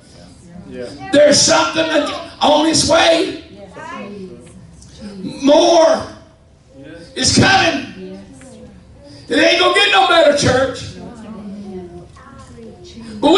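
A middle-aged man preaches with animation through a microphone in a hall with some echo.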